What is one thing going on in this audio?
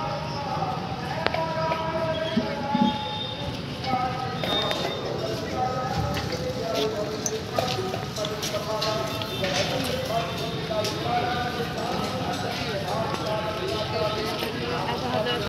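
A group of adults chants and talks nearby outdoors.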